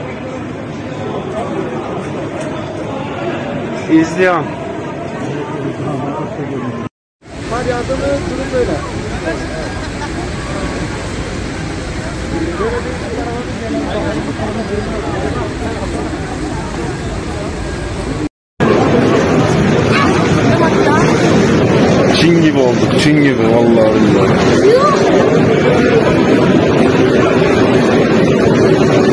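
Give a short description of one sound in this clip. A dense crowd of men and women chatters and calls out.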